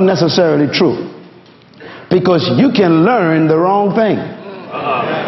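A man speaks with animation through a microphone to an audience.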